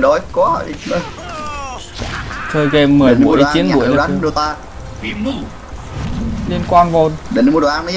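Game spells and hits whoosh and clash.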